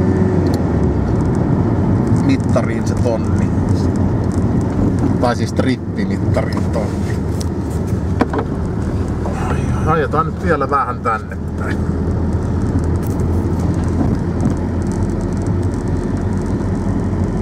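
Tyres roll and rumble over a rough, bumpy road.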